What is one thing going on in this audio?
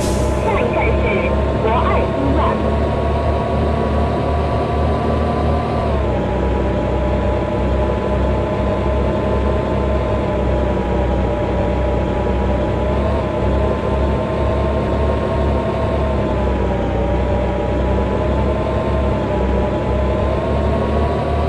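A bus engine hums steadily, its pitch dipping and rising as it changes speed.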